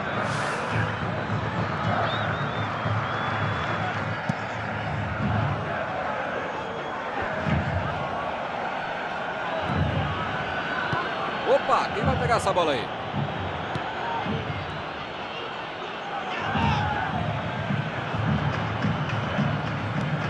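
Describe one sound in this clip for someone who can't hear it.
A stadium crowd roars steadily throughout.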